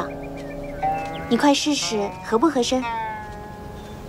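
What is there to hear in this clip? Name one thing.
A zither is plucked in short ringing notes.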